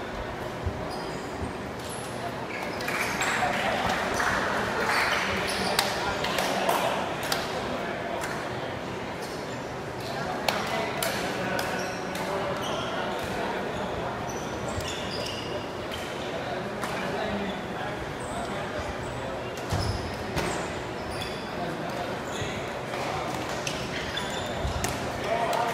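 A shuttlecock is hit back and forth with sharp taps.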